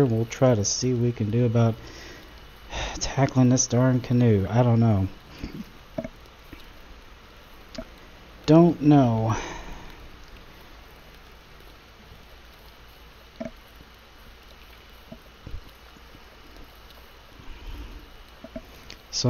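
A paddle splashes softly in calm water.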